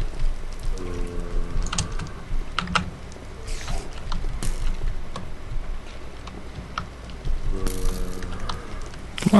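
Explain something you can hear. A fiery creature breathes with a low, hollow rasp.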